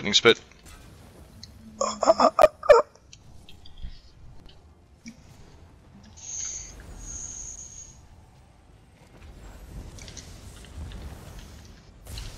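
Magic spells crackle and burst in quick blasts.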